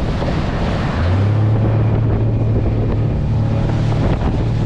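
An outboard motor drones at speed.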